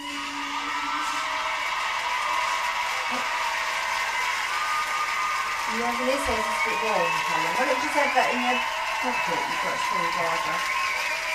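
A band plays loud pop music, heard through a television speaker.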